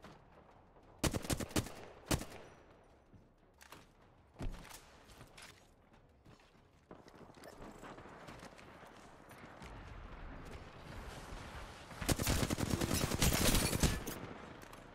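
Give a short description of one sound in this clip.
A rifle fires in rapid bursts of gunshots.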